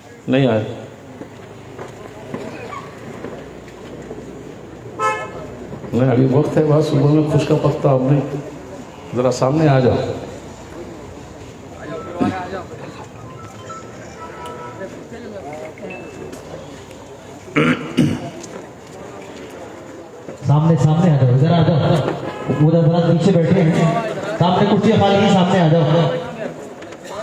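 A man chants loudly in bursts through a microphone and loudspeakers, with long pauses between phrases.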